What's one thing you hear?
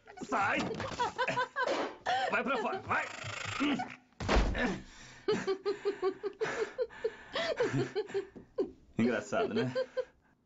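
A young woman laughs loudly and hysterically.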